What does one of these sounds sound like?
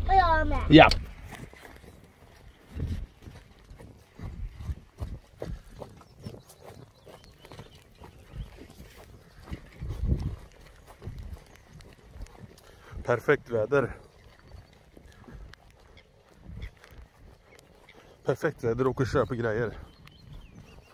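Footsteps swish through wet grass.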